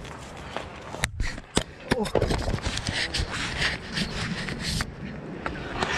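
A glove rubs and bumps loudly against the microphone.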